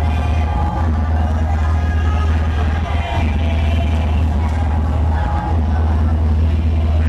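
Loud electronic dance music with a heavy thumping bass plays.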